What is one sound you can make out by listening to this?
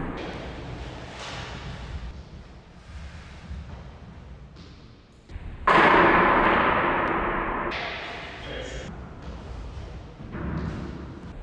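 Steel blades clash and scrape in an echoing hall.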